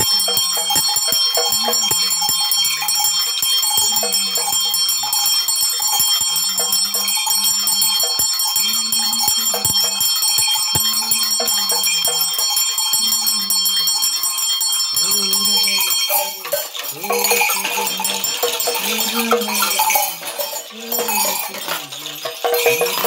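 Rattles shake with a dry, clattering rhythm.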